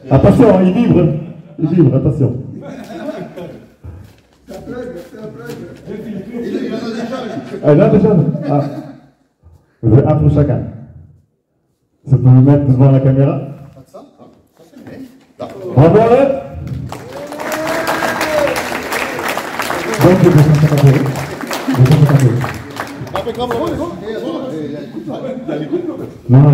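A man speaks with animation to a group in an echoing hall.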